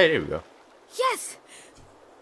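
A young boy speaks briefly.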